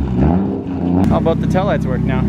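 A car exhaust burbles at idle.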